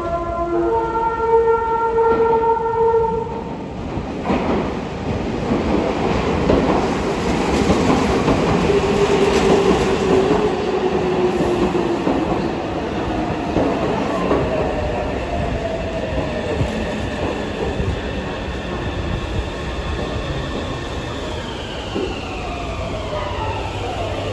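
A train rolls into the station with a loud rumble.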